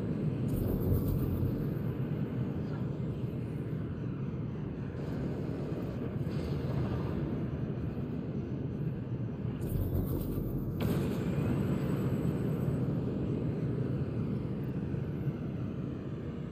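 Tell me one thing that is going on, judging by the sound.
A spacecraft's engines roar steadily.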